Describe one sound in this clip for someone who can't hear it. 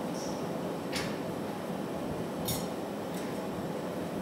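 A metal rod clinks and taps against a metal bench.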